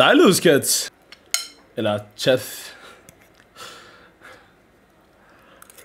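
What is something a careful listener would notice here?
A fork scrapes against a plate.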